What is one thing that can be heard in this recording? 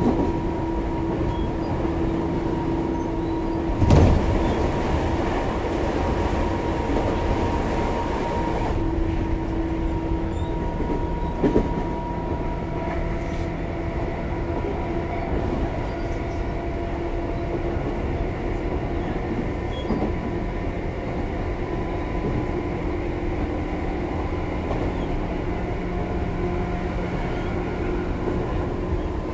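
An electric train hums steadily close by.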